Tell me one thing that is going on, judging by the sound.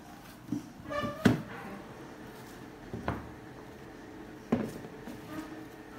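A cardboard box is set down on a table with soft knocks.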